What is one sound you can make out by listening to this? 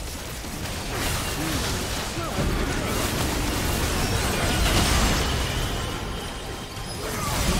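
Magical spell effects whoosh and crackle in a fast fight.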